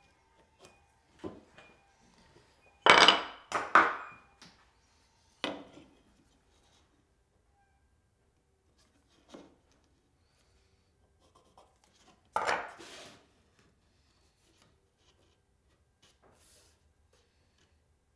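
A pencil scratches lines on wood.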